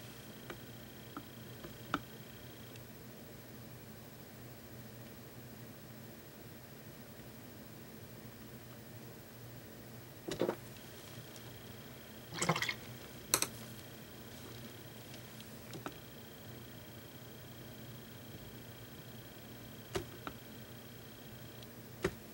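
A small brush strokes softly against a painted board.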